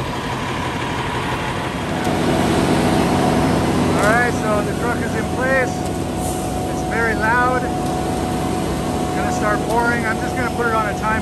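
A concrete mixer truck's diesel engine rumbles steadily close by.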